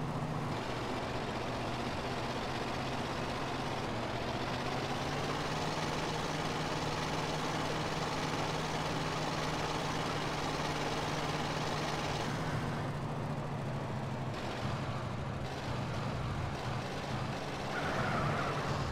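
A heavy truck engine drones steadily as it drives along a road.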